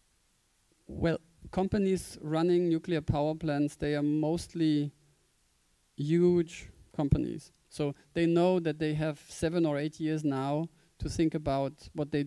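A man speaks with animation into a microphone, heard through loudspeakers in a large room.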